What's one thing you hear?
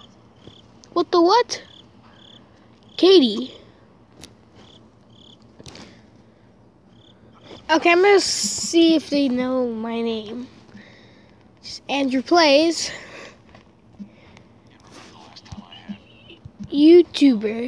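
A boy talks with animation into a nearby microphone.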